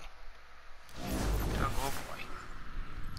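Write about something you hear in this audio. A deep whooshing rumble sweeps in and fades.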